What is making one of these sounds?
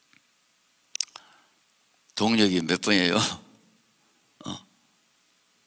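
A middle-aged man speaks with animation into a microphone in a large hall.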